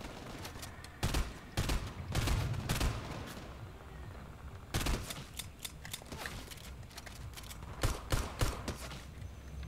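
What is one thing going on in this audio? Gunshots fire in quick bursts in a video game.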